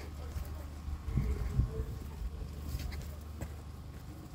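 Leaves rustle and brush close by.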